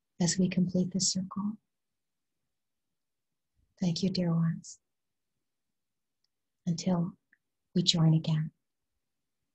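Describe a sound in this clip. A woman speaks calmly and closely into a microphone, in short bursts.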